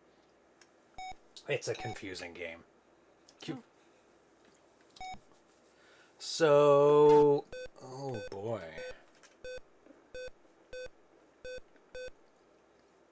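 A video game beeps in short tones.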